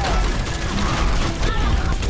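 A blast bursts loudly.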